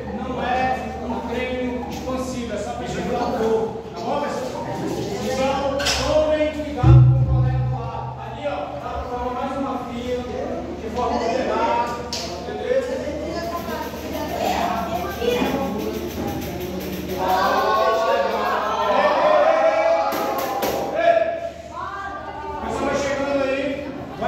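Many children and adults chatter and call out in a large echoing hall.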